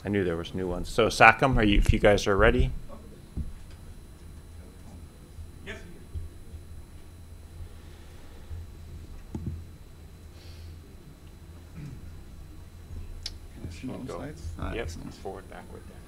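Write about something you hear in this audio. A young man speaks through a microphone, pausing at times.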